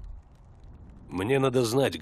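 A man replies calmly in a low voice.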